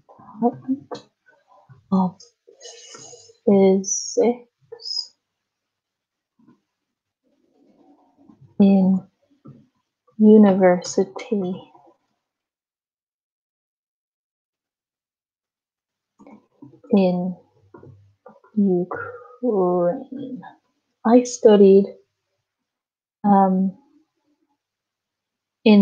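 A woman speaks calmly in an online call, in short phrases with pauses.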